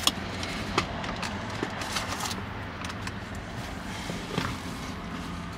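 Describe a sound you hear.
Plastic trim clicks and rattles as hands pry at a car's center console.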